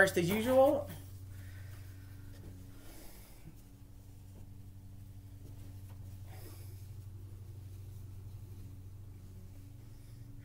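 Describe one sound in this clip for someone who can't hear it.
Fabric rustles as a shirt is unfolded.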